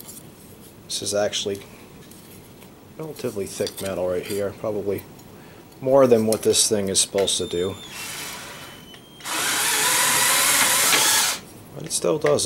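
A thin metal strip scrapes and rattles between steel rollers.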